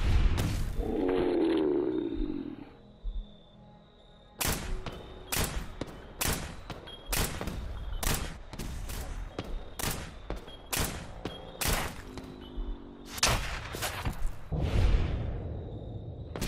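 Electric crackling zaps and fizzles.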